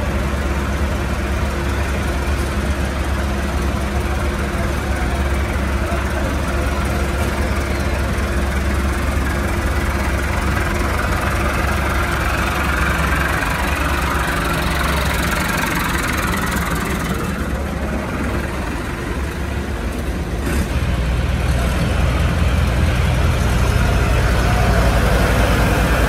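Diesel tractor engines idle.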